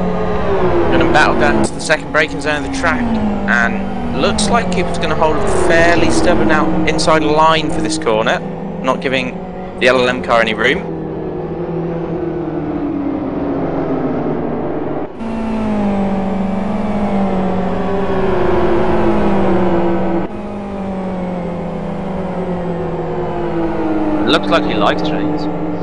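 Tyres squeal as cars brake into corners.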